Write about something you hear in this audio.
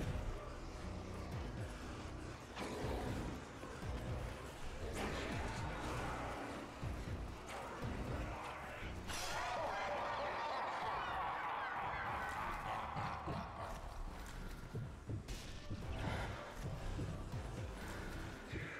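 Heavy footsteps crunch over rubble.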